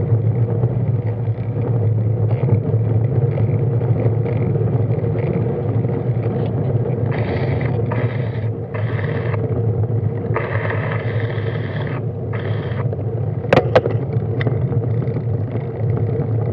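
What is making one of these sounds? Wind rumbles against a microphone on a moving bicycle outdoors.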